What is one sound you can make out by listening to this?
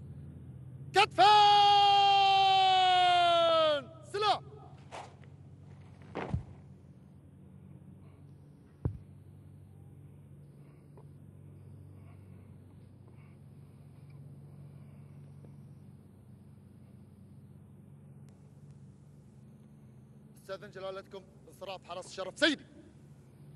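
A man shouts drawn-out drill commands outdoors.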